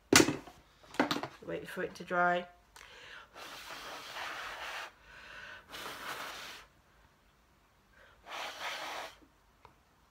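A woman speaks close by, in short bursts with breathy pauses.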